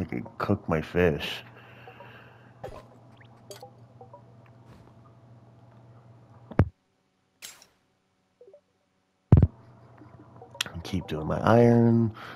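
Short electronic blips sound as game menus open and close.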